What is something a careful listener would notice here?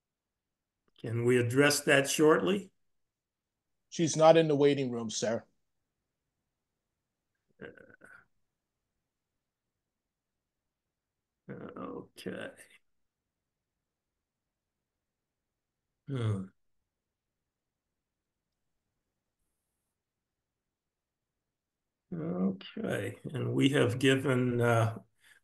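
An elderly man speaks calmly through an online call, in short bursts with long pauses.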